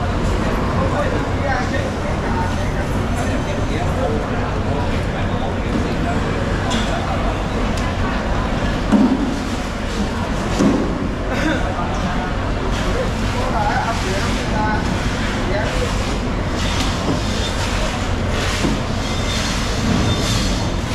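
A knife slices wetly through raw fish flesh.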